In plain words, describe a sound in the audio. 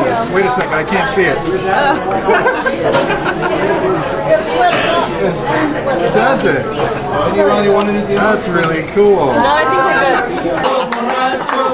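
A man talks with amusement close by.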